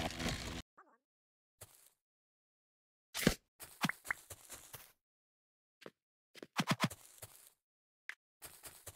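Short game sound effects pop and thud in bursts.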